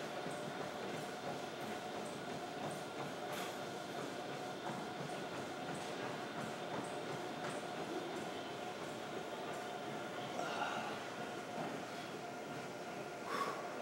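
A man breathes hard with effort.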